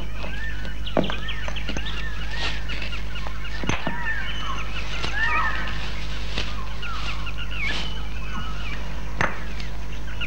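A wooden stick knocks sharply against rock a few times.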